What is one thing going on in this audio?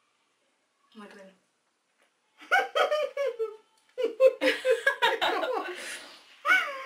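A second young woman speaks and laughs close by.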